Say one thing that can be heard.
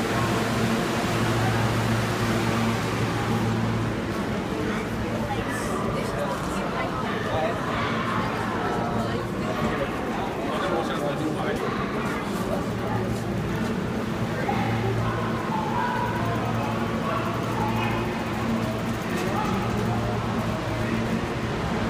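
A crowd of passengers murmurs.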